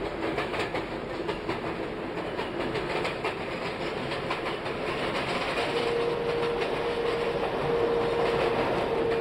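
A subway train rumbles and clatters along the tracks.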